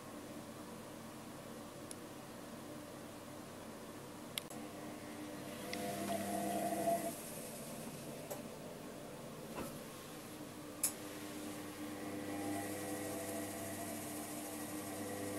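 A washing machine hums and whirs steadily close by.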